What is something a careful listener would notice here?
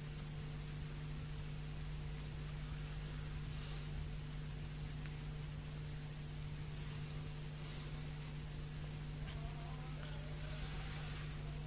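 A low, steady hum with hiss runs throughout.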